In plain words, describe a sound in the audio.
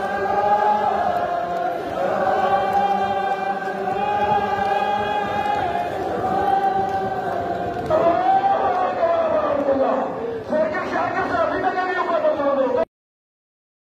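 A large crowd of men chants loudly together in a rhythmic lament.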